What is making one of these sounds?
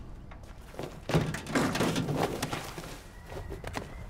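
Boots thud and scrape on a metal bin.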